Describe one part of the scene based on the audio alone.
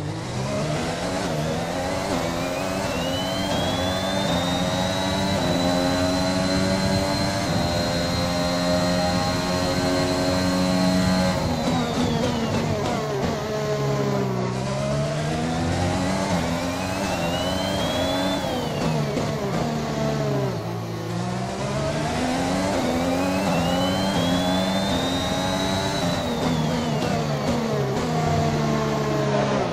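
A racing car engine screams as it accelerates through the gears, then drops in pitch when braking.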